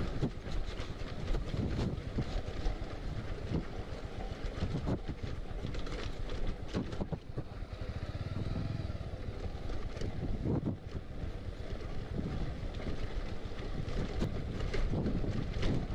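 Tyres crunch and rattle over loose gravel and stones.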